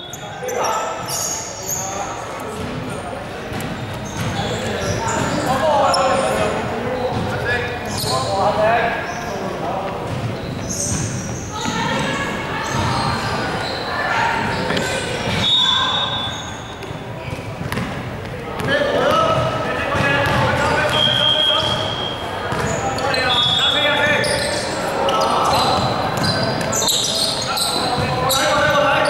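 Men call out and talk in a large echoing hall.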